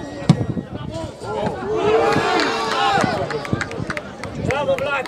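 Spectators cheer and shout from the sideline.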